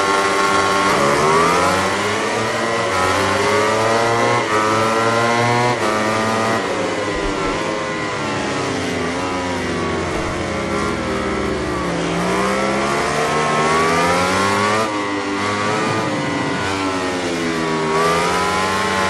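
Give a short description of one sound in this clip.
Racing motorcycle engines roar and rise and fall in pitch as they speed along.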